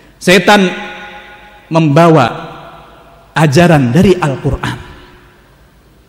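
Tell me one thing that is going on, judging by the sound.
A man preaches forcefully into a microphone in an echoing hall.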